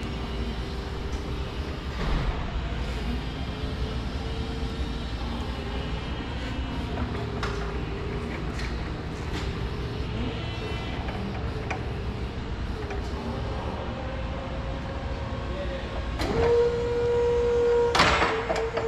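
An electric forklift motor whines steadily as the forklift drives and turns.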